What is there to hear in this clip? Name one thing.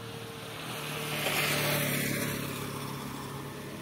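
A motorcycle passes by nearby.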